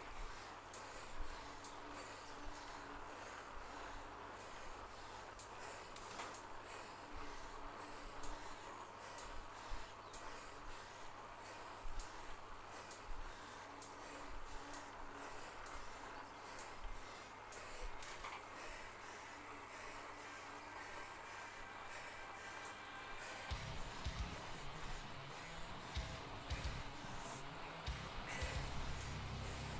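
An indoor bike trainer whirs steadily as a rider pedals.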